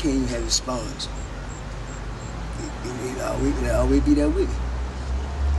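An elderly man speaks quietly and slowly, close by.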